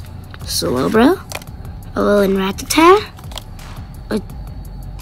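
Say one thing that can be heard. Playing cards slide and rustle against each other in a hand.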